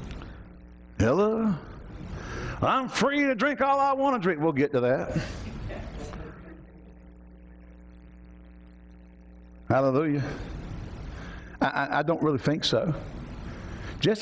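A middle-aged man speaks calmly through a headset microphone, with pauses.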